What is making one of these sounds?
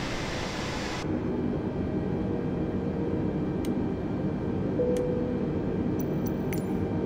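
Jet engines hum low and muffled from inside a cockpit.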